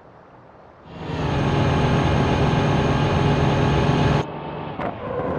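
A bus engine drones loudly.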